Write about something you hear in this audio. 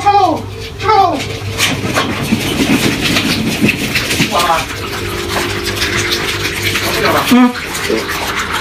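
Puppies yelp and whine.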